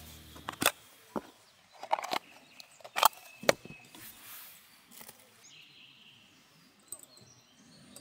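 Plastic and metal parts click and knock together.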